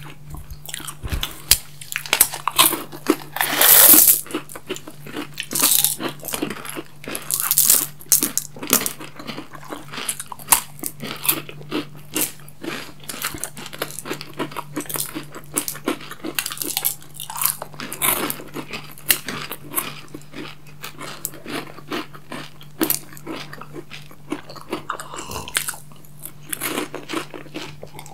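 Two people chew crunchy chocolate snacks close up.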